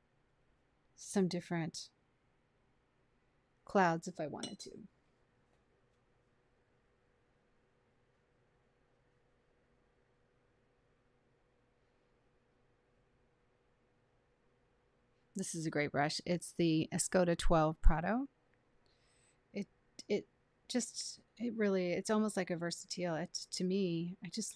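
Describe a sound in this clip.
A young woman speaks calmly and closely into a microphone.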